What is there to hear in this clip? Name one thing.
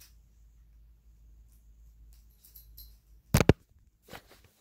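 Objects knock and rustle as they are handled close by.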